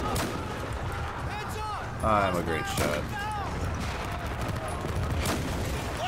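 A rifle fires a sharp shot.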